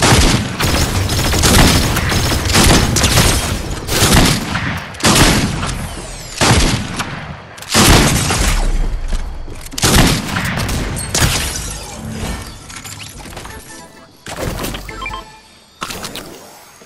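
Shotgun blasts boom and echo repeatedly.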